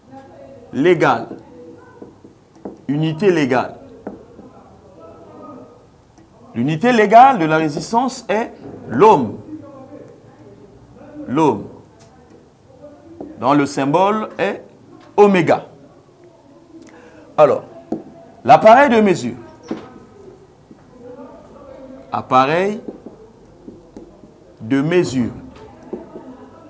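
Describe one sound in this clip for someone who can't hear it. A man speaks slowly and calmly, in short phrases with pauses.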